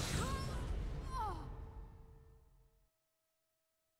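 A deep, rushing whoosh swells and slowly fades away.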